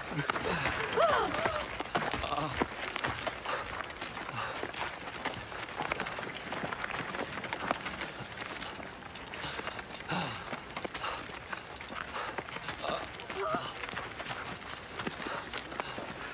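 A crowd of footsteps shuffles over dry, stony ground.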